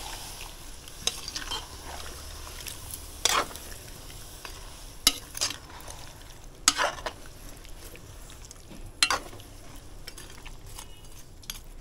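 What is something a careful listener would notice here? A spoon stirs vegetables in a pot, clinking against the metal.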